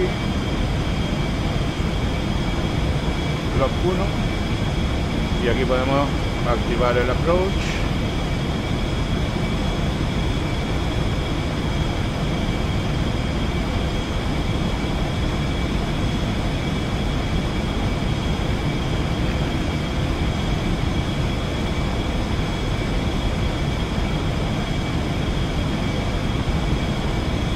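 A jet engine hums with a steady, droning roar.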